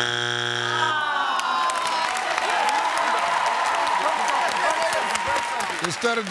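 A studio audience cheers and applauds.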